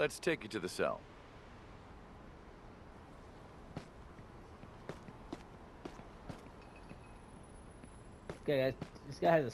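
Footsteps walk on a hard floor.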